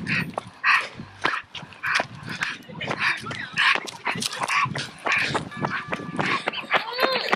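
A small dog's claws tap quickly on pavement.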